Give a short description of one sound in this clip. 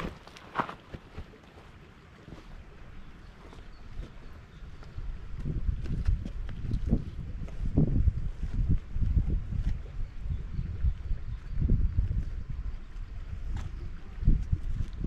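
Footsteps crunch on dry earth and stones.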